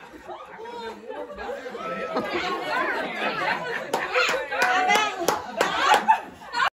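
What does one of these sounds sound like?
A group of young girls sing together cheerfully, close by.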